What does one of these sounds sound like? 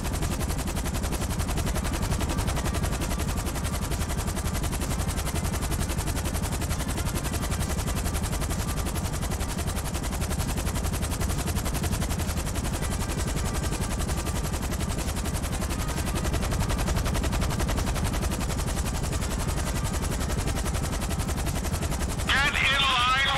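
A helicopter's rotor thrums steadily overhead.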